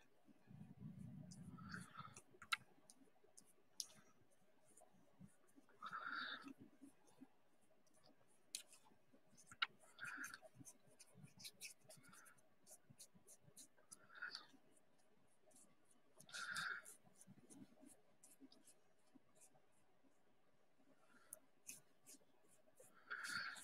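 A paintbrush scratches and brushes softly on paper.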